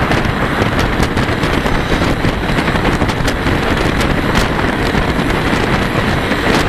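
Wind roars loudly across a microphone, as if outdoors on a moving bicycle.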